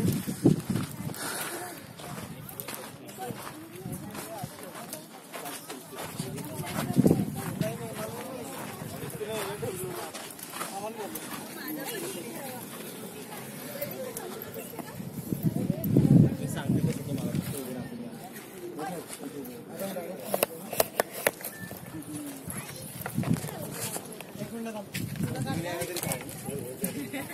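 A group of adult men and women chatter nearby outdoors.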